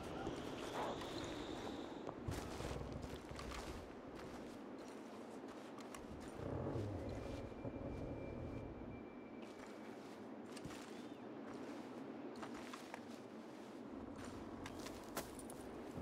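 Footsteps crunch slowly on a gritty wooden floor.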